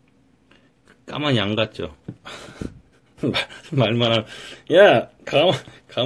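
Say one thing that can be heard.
A young man laughs loudly and close by.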